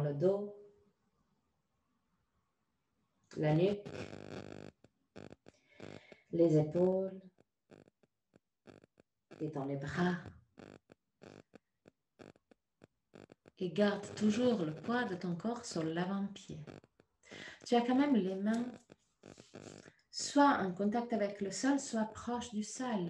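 A woman speaks calmly, giving instructions close to a microphone.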